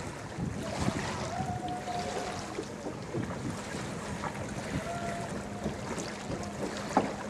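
A large ship's engine hums low and steady.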